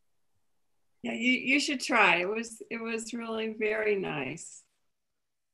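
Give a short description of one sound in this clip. A woman speaks cheerfully over an online call.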